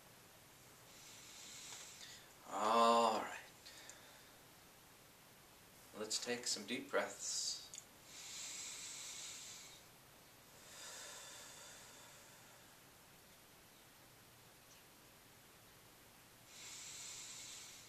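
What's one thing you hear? A man breathes out audibly in long breaths.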